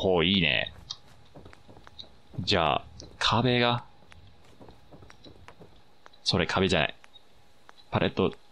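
Short electronic menu tones chime several times.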